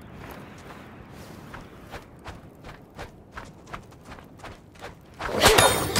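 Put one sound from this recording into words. A chain swings and whooshes through the air.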